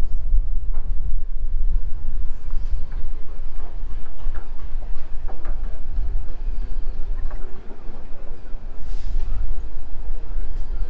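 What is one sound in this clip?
River water ripples and splashes over rocks.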